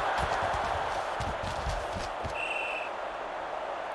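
Football players' pads thump together in a tackle.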